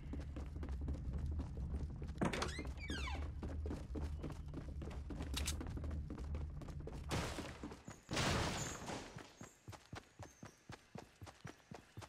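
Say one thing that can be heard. Footsteps thud quickly on wooden floors and grass.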